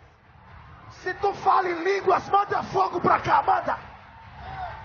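A large crowd shouts and cheers in a large hall.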